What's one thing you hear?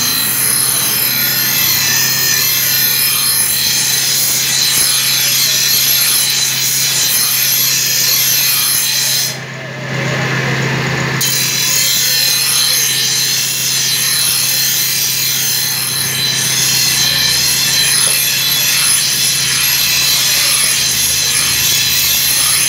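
A metal blade grinds harshly against a spinning wheel, with a brief pause partway through.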